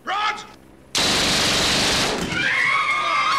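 A gun fires a long, loud burst.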